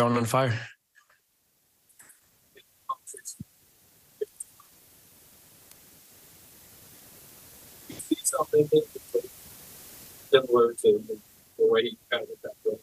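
A young man speaks calmly into a microphone, pausing between phrases.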